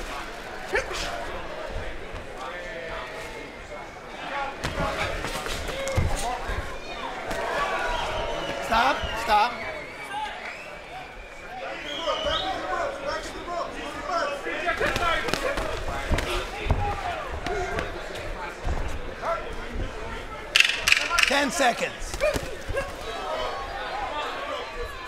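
A crowd cheers and shouts in a large arena.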